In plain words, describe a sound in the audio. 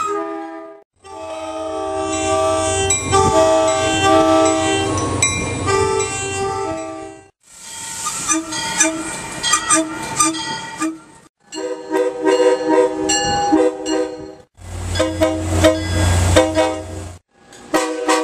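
A train rumbles past on the tracks.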